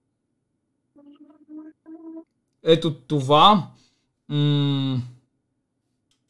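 A young man talks and exclaims with animation close to a microphone.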